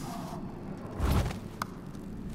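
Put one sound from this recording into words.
A blade strikes a man with a heavy thud.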